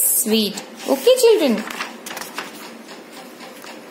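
A page of a book turns with a papery rustle.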